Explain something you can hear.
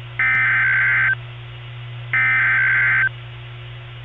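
A radio blares two short, harsh electronic alert bursts through a small speaker.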